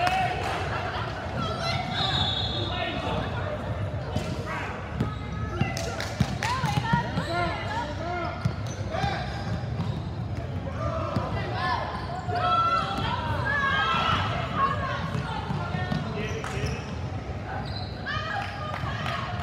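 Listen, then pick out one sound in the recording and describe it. A basketball bounces on a hard wooden floor, echoing in a large hall.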